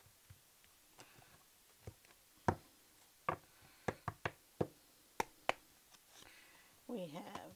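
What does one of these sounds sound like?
Playing cards tap and riffle as they are shuffled by hand.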